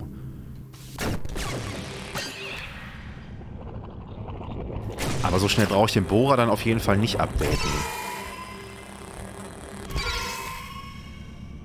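Electronic laser shots zap and buzz.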